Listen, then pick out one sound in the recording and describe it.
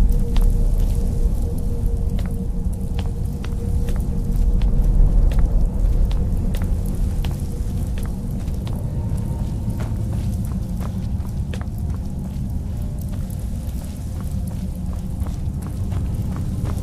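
Footsteps tread on a stone floor at a steady walking pace.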